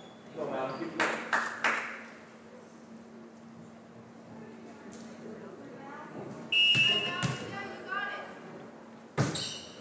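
A volleyball thumps off a hand.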